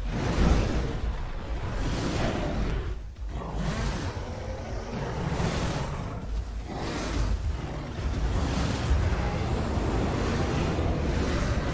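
Heavy bites and thuds land in a scuffle between beasts.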